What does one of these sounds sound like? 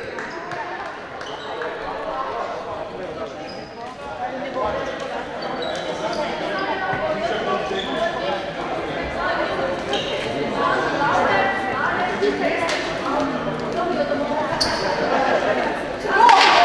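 Many young girls chatter and shout across a large echoing hall.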